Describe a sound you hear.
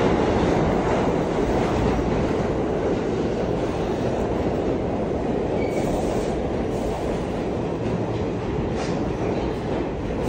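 A subway train rushes past with a loud, steady rumble and roar that slowly eases.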